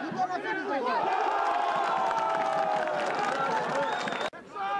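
A man cheers loudly and at length.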